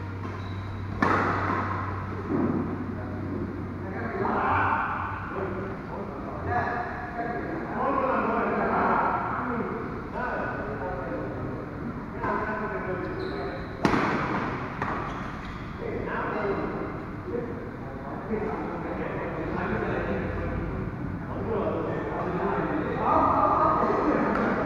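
A badminton racket hits a shuttlecock in a large echoing hall.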